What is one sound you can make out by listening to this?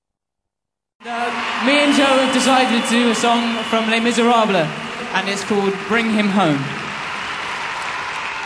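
A large crowd cheers and applauds in a big open space.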